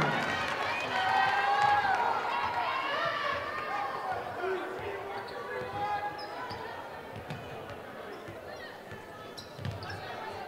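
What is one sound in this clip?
A crowd murmurs and cheers in a large echoing gym.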